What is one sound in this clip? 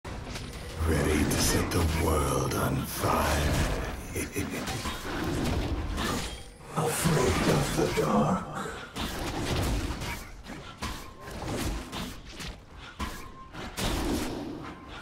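Game combat effects whoosh and clash in quick bursts.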